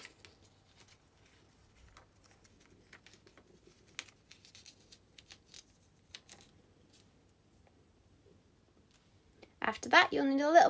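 Paper rustles and crinkles softly as it is handled.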